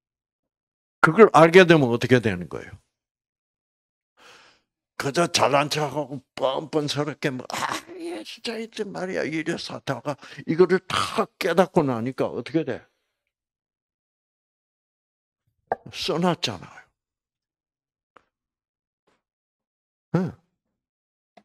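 An elderly man speaks with animation through a microphone, in bursts with pauses.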